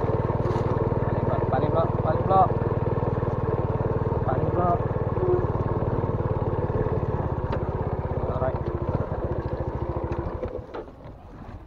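A scooter engine idles with a steady buzzing hum, then stops.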